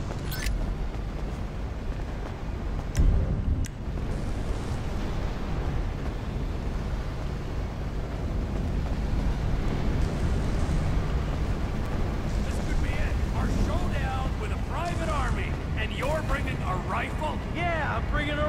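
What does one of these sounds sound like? Heavy machinery rumbles low and steadily in a large echoing hall.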